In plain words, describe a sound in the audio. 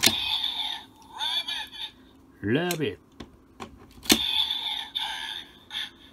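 A toy belt clicks as a plastic bottle is pushed into its slot.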